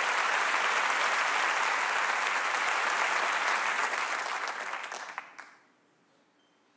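An audience applauds loudly in a large hall and the applause fades.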